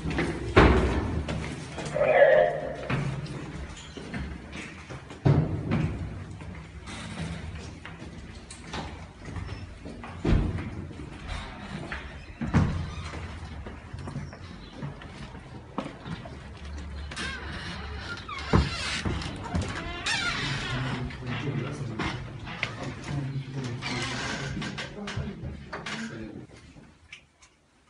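Footsteps thud and shuffle on a hard floor.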